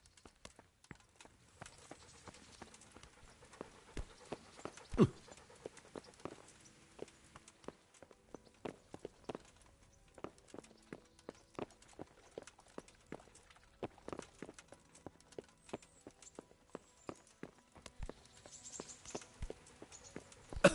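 Footsteps thud on wooden stairs and floorboards.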